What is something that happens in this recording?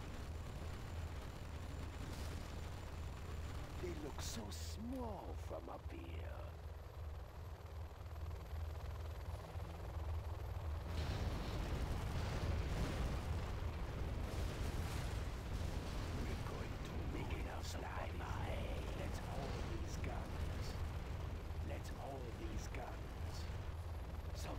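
Helicopter rotors thump steadily.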